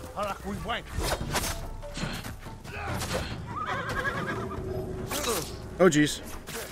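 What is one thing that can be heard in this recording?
Swords clash and ring out sharply.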